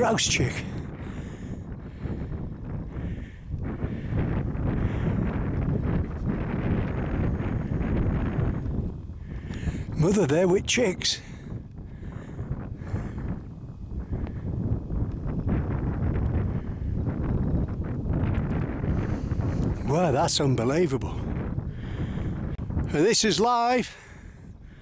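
Wind blows hard across open ground.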